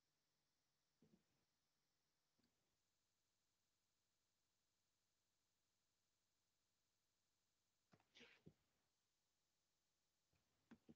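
A man speaks in short, quiet bursts through a microphone on an online call.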